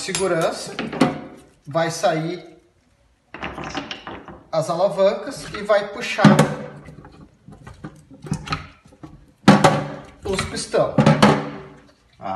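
Plastic parts knock and clatter against a metal sink.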